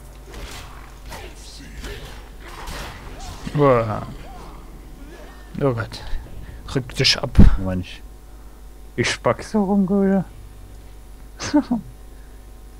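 Blades swing and clash in a fight.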